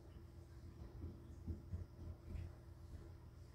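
A cat's paws thump softly as it climbs on a carpeted cat tree.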